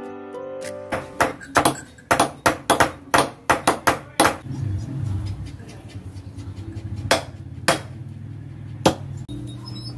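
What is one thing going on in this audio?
Hammers and chisels knock on old wood in quick strokes.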